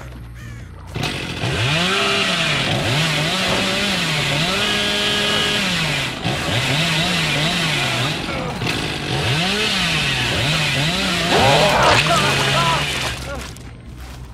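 A chainsaw engine roars and revs up and down.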